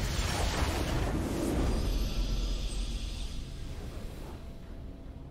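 A triumphant game fanfare swells loudly and then fades away.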